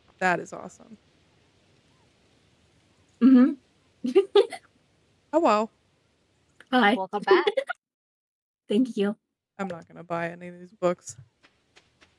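A young woman talks with animation into a microphone, in short bursts with pauses.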